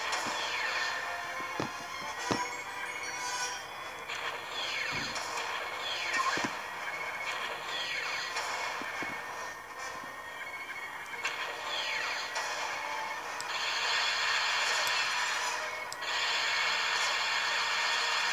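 Spaceship engines roar steadily in a video game.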